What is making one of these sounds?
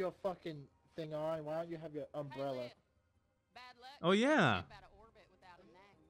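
A woman speaks in a rough, gruff voice.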